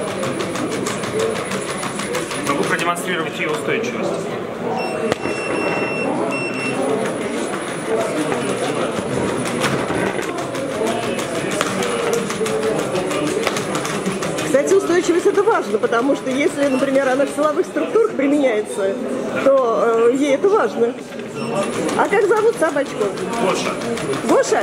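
A robot dog's feet patter on a hard floor.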